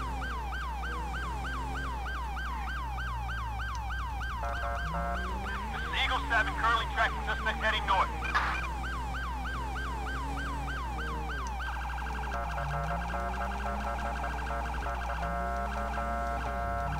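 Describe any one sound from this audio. A police siren wails in a fast, rising and falling yelp, then switches to a rapid pulsing tone.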